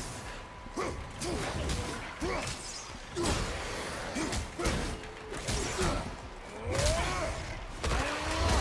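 Heavy blows and impacts thud and crash in a fight.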